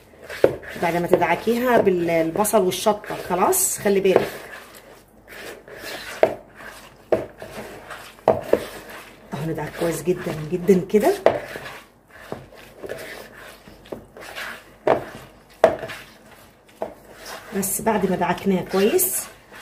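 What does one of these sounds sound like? Hands squelch and knead wet minced meat in a plastic bowl.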